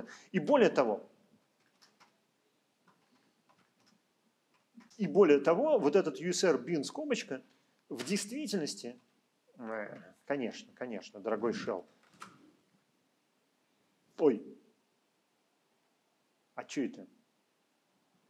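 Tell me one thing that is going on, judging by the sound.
An elderly man speaks calmly in bursts through a microphone, as on an online call.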